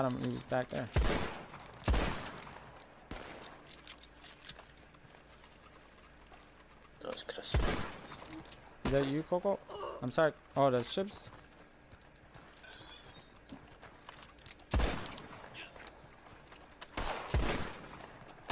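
Gunshots ring out sharply, one at a time, with a short echo.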